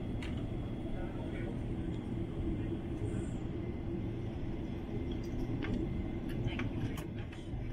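A jet engine roars steadily inside an airliner cabin.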